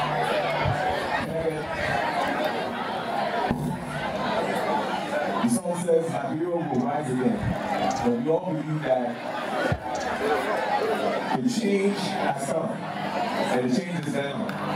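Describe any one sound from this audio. A large crowd murmurs in the background.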